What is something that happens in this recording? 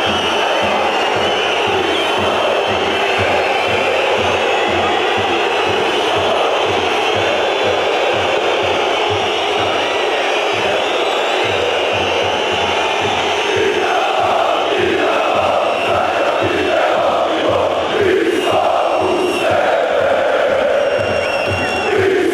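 A large crowd of fans chants loudly in unison in an open stadium.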